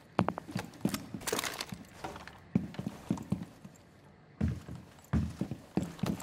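Footsteps tread on a hard floor at a quick pace.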